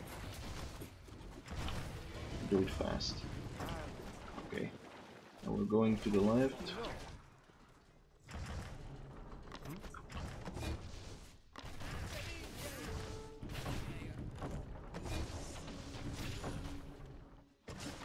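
Explosions boom amid a battle.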